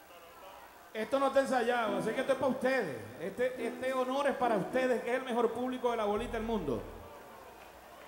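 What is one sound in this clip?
A man speaks loudly and with animation through a microphone and loudspeakers.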